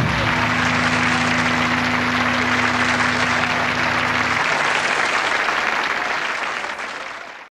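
A crowd applauds loudly, slowly fading at the end.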